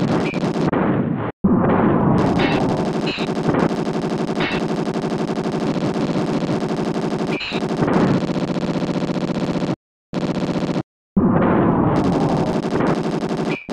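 Upbeat electronic game music plays with a steady beat.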